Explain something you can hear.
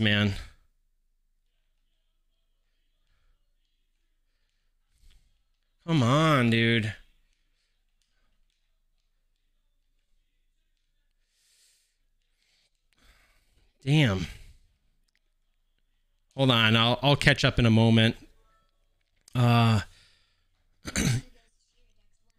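A man talks into a close microphone in short, lively bursts with pauses between them.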